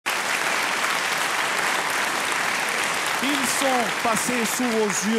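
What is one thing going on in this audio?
A large audience claps and cheers in a big hall.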